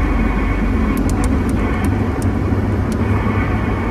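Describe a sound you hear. A CB radio clicks as its channel selector is turned.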